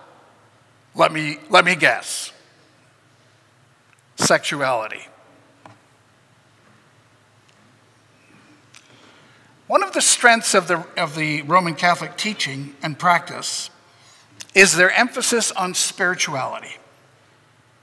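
An older man speaks with animation into a microphone, with pauses between phrases.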